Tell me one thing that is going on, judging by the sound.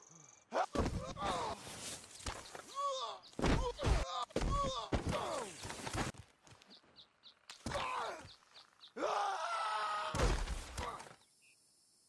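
A body tumbles and thuds heavily into deep snow.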